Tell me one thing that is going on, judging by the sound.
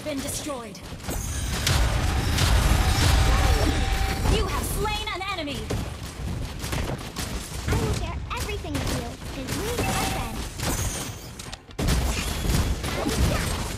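Magic spells boom and crackle in a game battle.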